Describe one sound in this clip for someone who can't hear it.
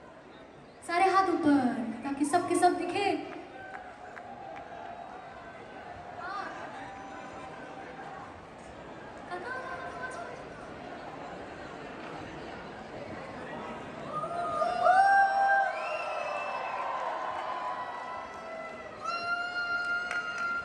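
A band plays live music through loud speakers in a large echoing hall.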